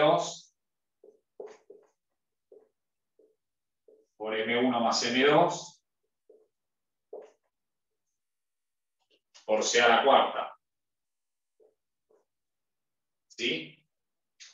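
A man speaks calmly in short bursts, close by.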